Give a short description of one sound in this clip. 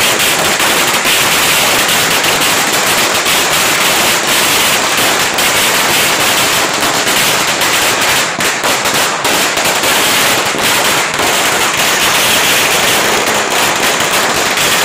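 Firecrackers crackle and bang loudly in rapid bursts.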